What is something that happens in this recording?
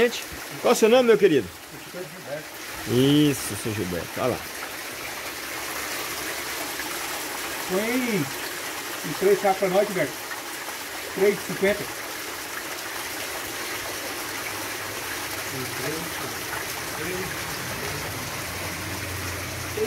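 Water splashes and bubbles steadily.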